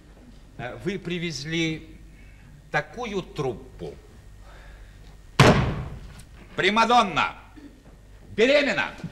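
A man speaks with animation on a stage, heard through a microphone.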